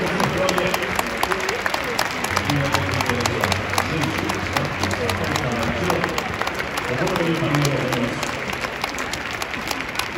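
A large stadium crowd chants and sings together, echoing under the roof.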